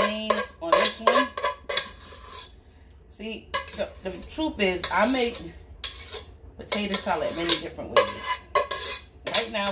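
A spoon scrapes against the inside of a metal mixing bowl.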